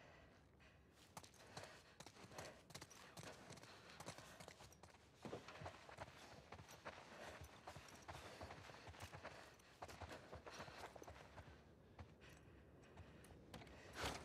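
Footsteps tap on a hard floor indoors.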